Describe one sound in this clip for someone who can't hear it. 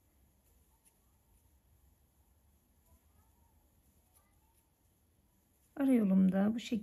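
Thread is pulled softly through fabric.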